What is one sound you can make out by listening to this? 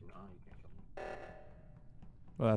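A game alarm blares.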